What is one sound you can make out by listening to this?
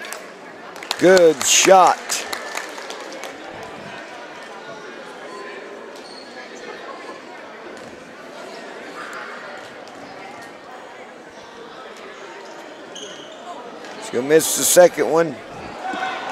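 Spectators shout and cheer loudly.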